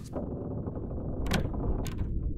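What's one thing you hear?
A metal door latch clicks open.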